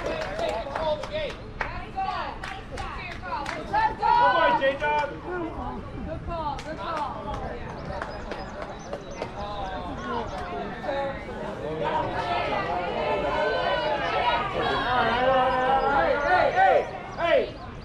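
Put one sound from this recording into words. Young boys shout and cheer loudly nearby outdoors.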